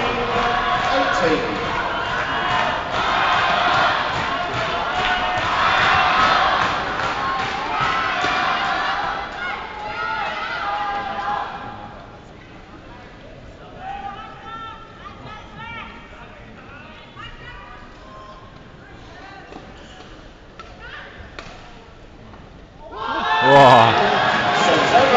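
A large crowd cheers and claps loudly in an echoing arena.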